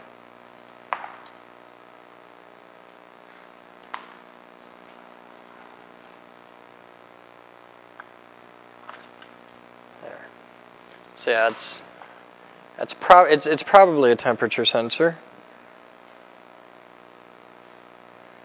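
Small clicks sound as a man fiddles with a cable.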